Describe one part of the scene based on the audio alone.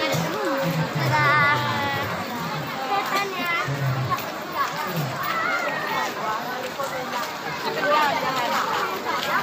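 A large crowd chatters and talks all around outdoors.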